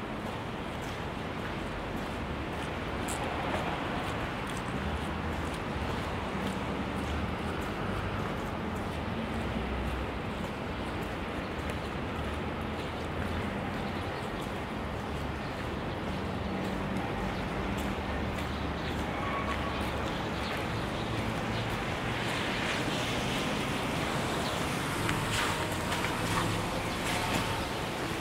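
A steady low rumble of wind blows outdoors.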